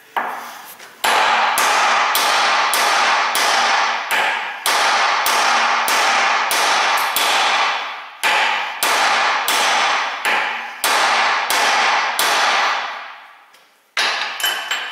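A hammer strikes metal repeatedly with loud ringing blows.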